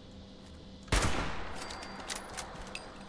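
A rifle fires a single loud shot that rings out and fades.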